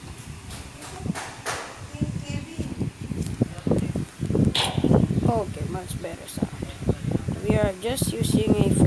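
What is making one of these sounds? A boy talks close to a microphone.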